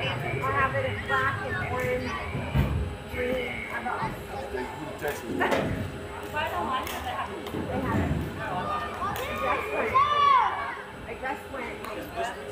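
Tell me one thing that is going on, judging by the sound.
Young girls shout and cheer outdoors, some distance away.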